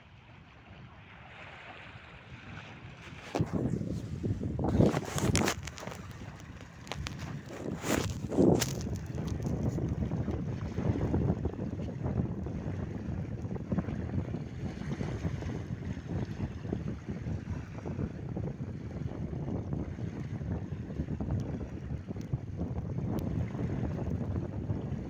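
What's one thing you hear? Small waves lap gently on the shore.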